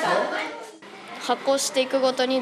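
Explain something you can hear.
A young boy speaks calmly into a microphone.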